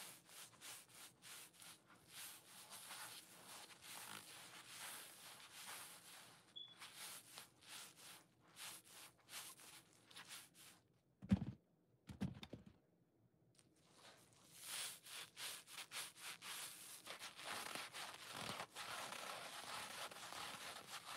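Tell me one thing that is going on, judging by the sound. Gloved hands squeeze and crinkle soft sponges up close.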